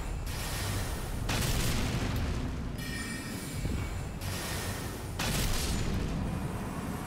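Magic blasts crackle and whoosh in bursts.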